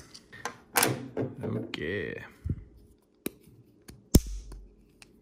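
A knife clicks and taps as a hand turns it.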